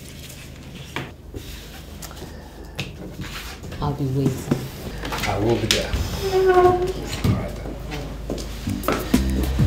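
A woman speaks in a low voice.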